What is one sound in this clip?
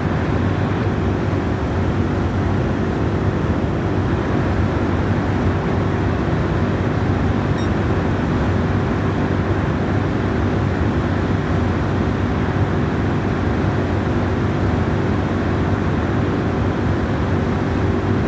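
A sports car engine roars steadily at high speed in top gear.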